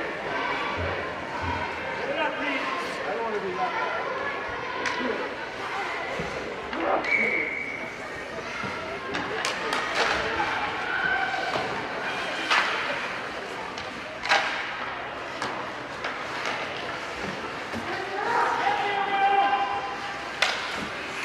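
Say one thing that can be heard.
Spectators call out and cheer in a large echoing rink.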